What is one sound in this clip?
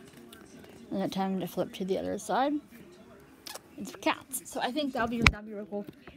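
A book is closed and slid across a carpet.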